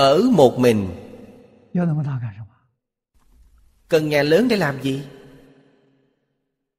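An elderly man speaks calmly and warmly into a microphone, with pauses.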